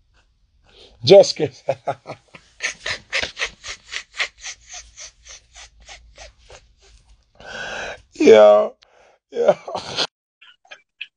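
A man laughs loudly close to a phone microphone.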